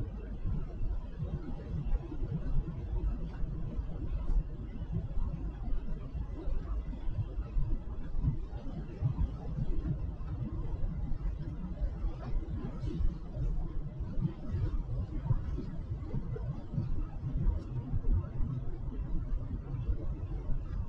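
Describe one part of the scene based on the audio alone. A car engine hums steadily as the car drives along a road.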